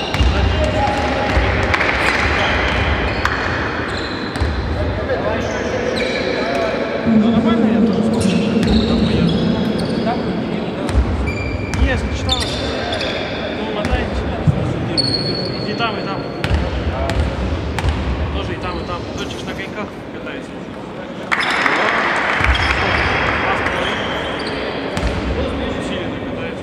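A small crowd murmurs and cheers in a large echoing hall.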